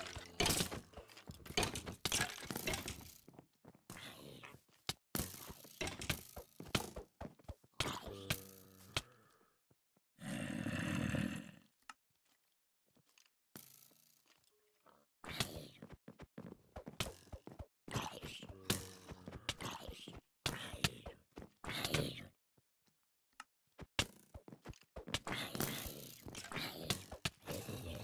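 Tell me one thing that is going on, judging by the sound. A sword strikes creatures with sharp thuds.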